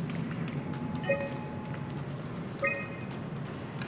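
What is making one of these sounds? Short electronic beeps chirp from a computer terminal.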